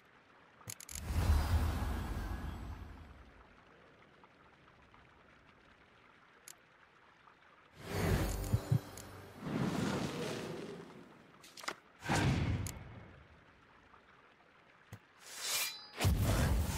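A card is played onto a board with a loud whoosh and thud.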